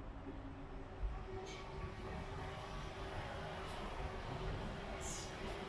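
A metro train rumbles across a bridge in the distance.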